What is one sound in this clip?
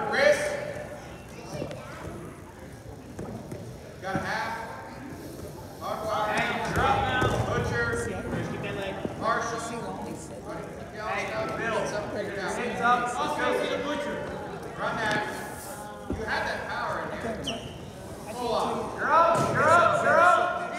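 Men and women among the spectators shout encouragement in a large echoing hall.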